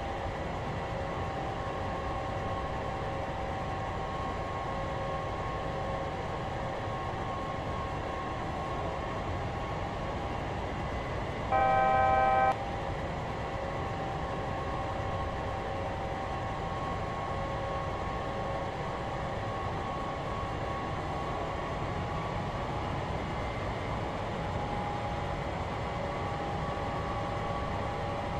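Jet engines hum steadily with a low rumble.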